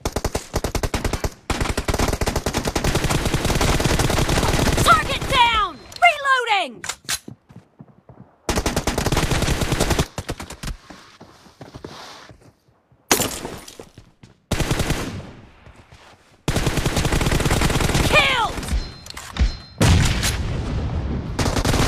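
A game's assault rifle fires in rapid automatic bursts.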